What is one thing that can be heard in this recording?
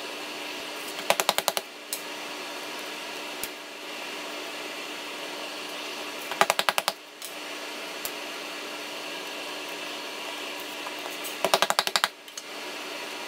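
A cutter knocks lightly on a stone counter.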